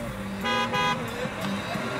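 A truck horn blasts twice in quick short bursts.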